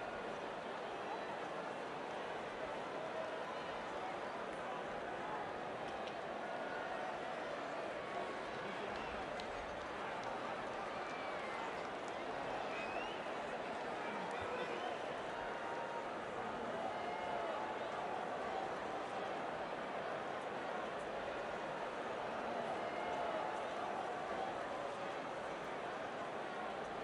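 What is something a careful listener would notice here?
A large stadium crowd cheers and murmurs steadily.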